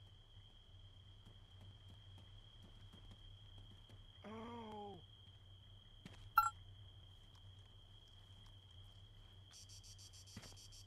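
Footsteps and gear rustle softly as a soldier crawls over rough ground.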